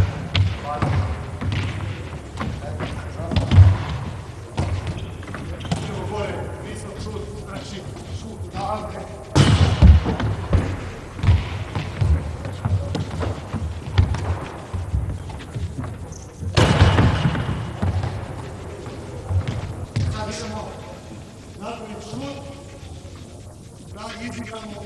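A handball bounces and slaps on a hard floor, echoing in a large hall.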